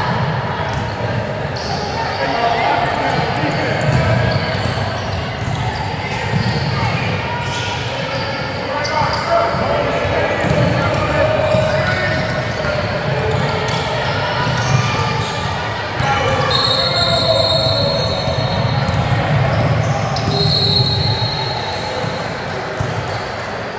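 Young women shout and call out to each other across the court.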